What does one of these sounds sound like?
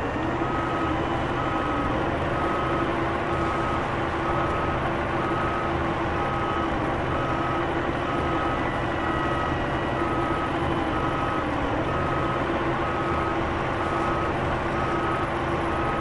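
A heavy diesel engine idles with a steady low rumble.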